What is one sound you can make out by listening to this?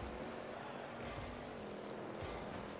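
A rocket boost roars briefly.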